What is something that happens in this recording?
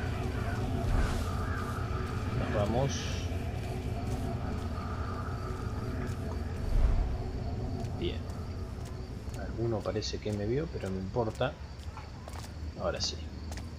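Footsteps tread softly on cobblestones.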